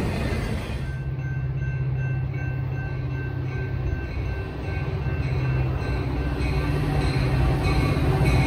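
A distant locomotive engine hums steadily as a train approaches.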